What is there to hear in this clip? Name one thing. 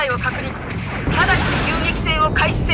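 A robot's jet thrusters roar.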